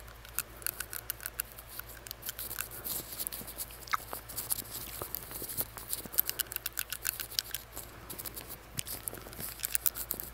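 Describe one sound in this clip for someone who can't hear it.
Fingers crinkle and tap against a paper face mask close to a microphone.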